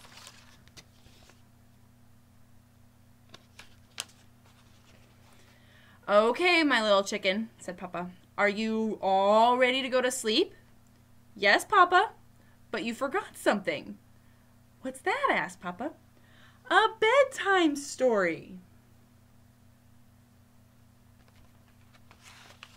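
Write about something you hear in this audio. Paper pages rustle as a book is turned.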